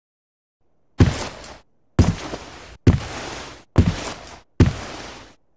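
Heavy boots stomp up steps in loud, even footfalls.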